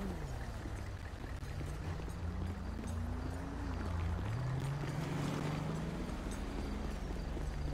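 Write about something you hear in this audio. A car engine hums and shifts in pitch nearby.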